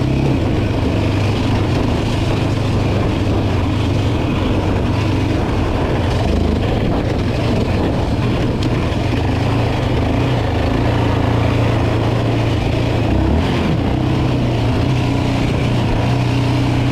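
A quad bike engine drones steadily up close.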